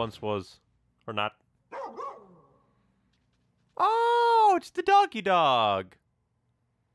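A young man speaks with feeling.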